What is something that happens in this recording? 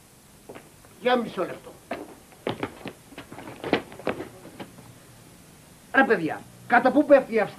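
A man speaks loudly and with animation nearby.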